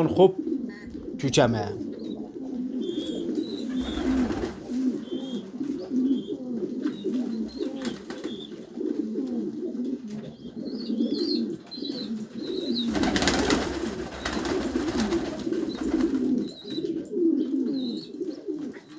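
Pigeons coo softly and steadily, close by.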